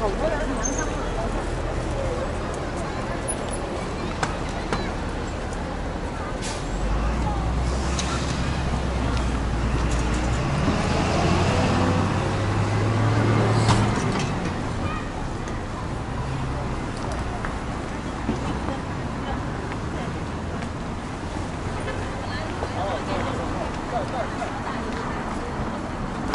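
Footsteps patter on pavement as a crowd walks.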